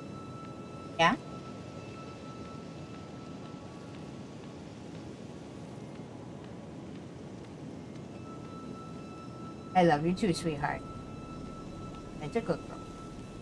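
A woman speaks in short bursts into a nearby microphone.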